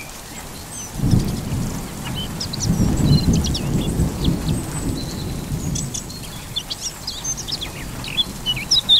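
Wind gusts across an open hillside.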